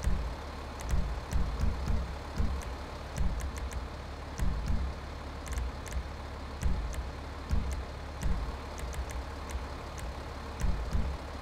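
A truck engine idles with a low, uneven rumble.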